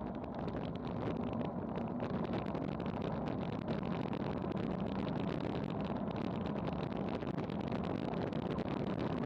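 Bicycle tyres hum on smooth road.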